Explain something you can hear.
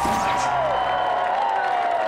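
A young boy cheers loudly.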